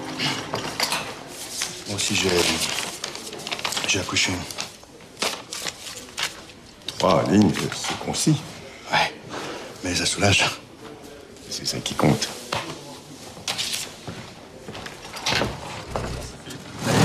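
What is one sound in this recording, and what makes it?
A middle-aged man speaks firmly and with animation nearby.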